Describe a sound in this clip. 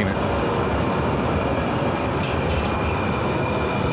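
A tram rolls by close at hand.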